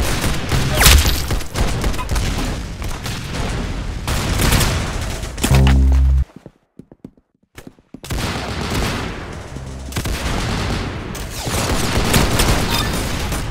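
Rapid gunfire rattles from a game.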